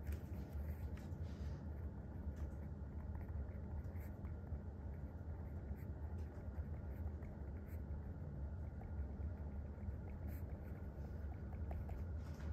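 A pen scratches softly across paper, close by.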